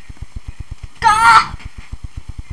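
A young boy shouts loudly.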